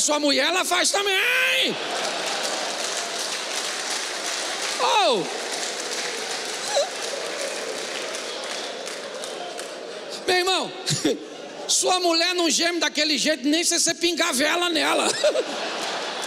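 A man speaks with animation through a microphone, echoing in a large hall.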